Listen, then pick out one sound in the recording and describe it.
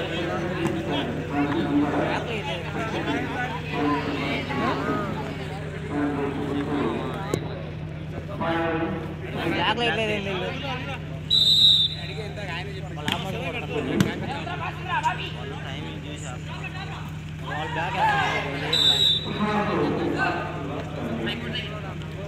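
Young men call out to each other loudly.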